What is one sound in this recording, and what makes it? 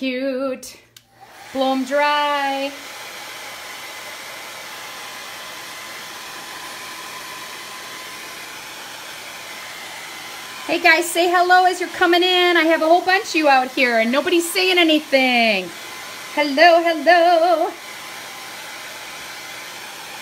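A hair dryer blows with a steady whooshing hum.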